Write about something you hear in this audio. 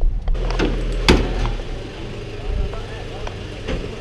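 A car's hood creaks open.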